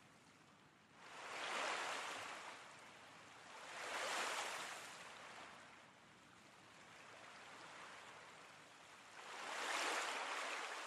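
Waves wash softly on a shore in slow swells.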